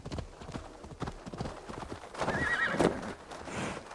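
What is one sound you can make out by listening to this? Hooves clop slowly on soft ground.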